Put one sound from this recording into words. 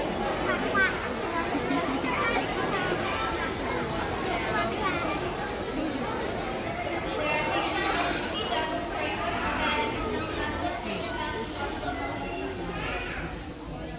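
A choir of young children sings together.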